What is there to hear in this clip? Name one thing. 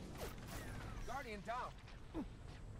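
An energy blast bursts with a sharp crackling whoosh.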